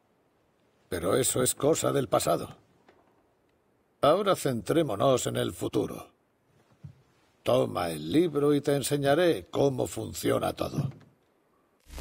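A young man answers calmly.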